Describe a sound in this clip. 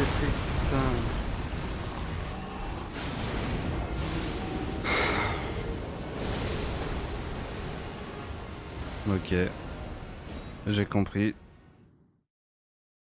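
Heavy blows crash and rumble in a fierce fight.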